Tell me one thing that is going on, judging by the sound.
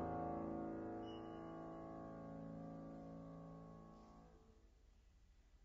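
A grand piano plays a sustained final chord that rings out and fades in a large hall.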